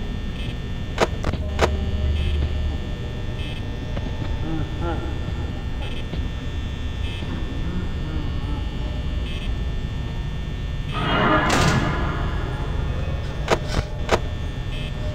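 Sharp clicks sound now and then.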